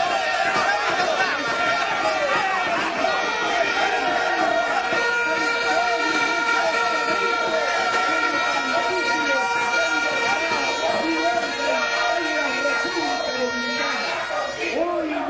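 A large crowd chatters and chants loudly outdoors.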